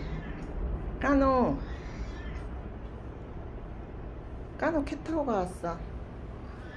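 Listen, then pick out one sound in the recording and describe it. A cat meows loudly several times.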